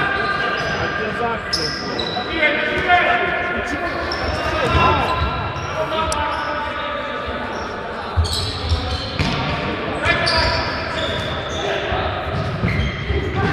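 Sports shoes squeak on a sports hall floor in a large echoing hall.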